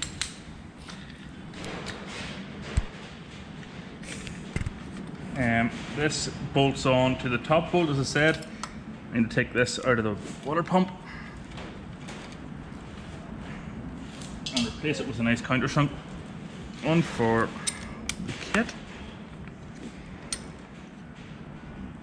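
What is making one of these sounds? Metal parts clink and click as a man fits an engine pulley.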